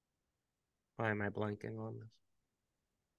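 A man speaks briefly over a microphone.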